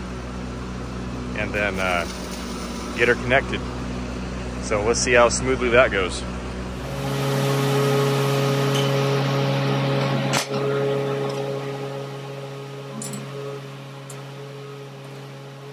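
A bulldozer engine runs with a steady low rumble.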